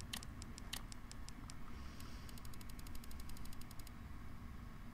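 Soft menu clicks tick rapidly as a list scrolls.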